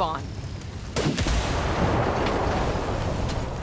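An explosion booms loudly, followed by a rushing roar.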